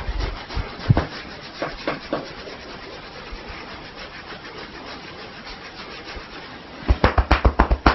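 Fingers rub and scratch through hair close by.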